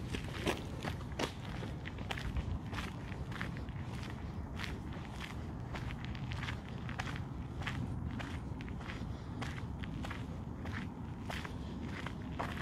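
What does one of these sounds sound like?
Footsteps crunch steadily on a gravel path outdoors.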